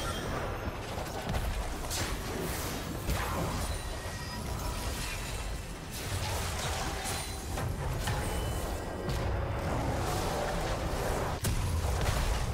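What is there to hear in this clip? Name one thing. Fantasy game spell effects whoosh and crackle in quick bursts.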